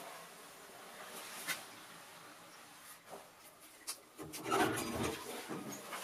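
A door handle rattles as someone works at the lock.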